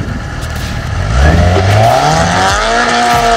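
A motorcycle engine revs loudly and rises in pitch.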